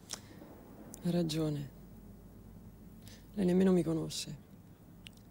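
A woman speaks softly and calmly nearby.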